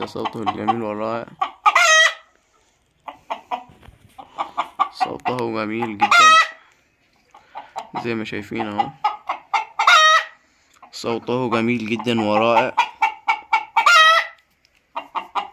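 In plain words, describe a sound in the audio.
A rooster crows loudly, again and again, each crow ending in a high squeal.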